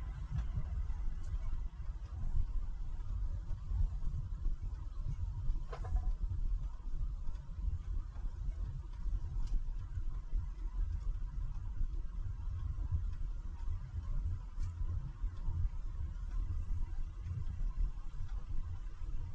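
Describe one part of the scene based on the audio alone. Wind buffets and roars past the car.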